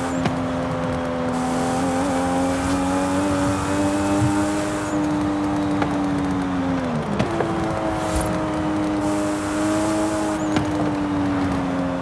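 A car engine drones steadily at speed, dipping briefly in pitch as it changes gear.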